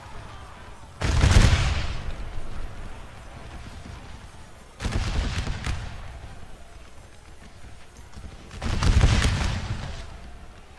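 Rifle volleys fire in loud rolling bursts and echo away.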